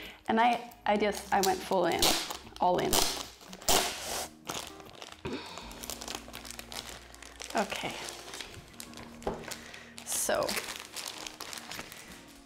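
A plastic wrapper crinkles as hands open it.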